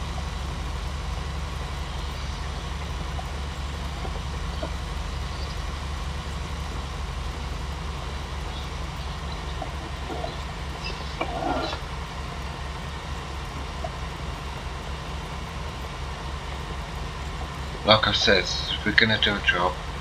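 A tractor engine rumbles steadily at low pitch.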